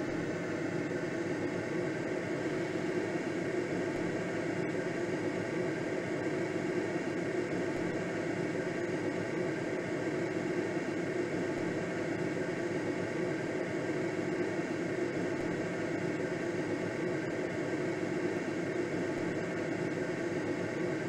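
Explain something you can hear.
Air rushes steadily past a gliding aircraft's cockpit.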